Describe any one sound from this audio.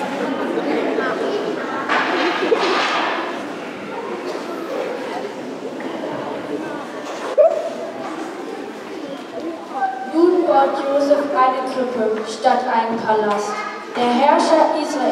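A child speaks in a large echoing hall.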